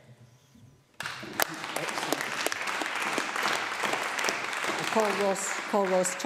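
Many people clap in a large echoing hall.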